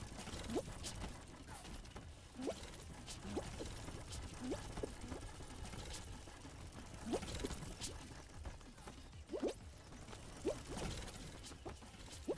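Short springy game sound effects pop up again and again.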